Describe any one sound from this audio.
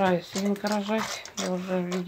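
A pig eats noisily from a metal bowl.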